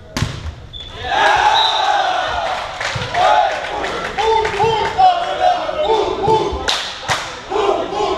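Young men shout and cheer.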